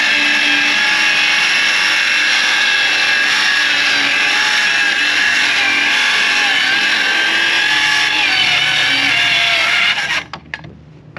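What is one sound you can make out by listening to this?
A circular saw whines loudly as it cuts through plywood.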